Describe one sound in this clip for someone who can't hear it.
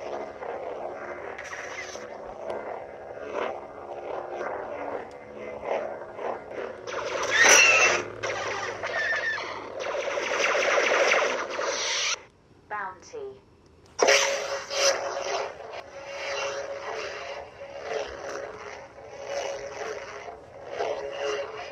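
A toy light sword whooshes as it is swung.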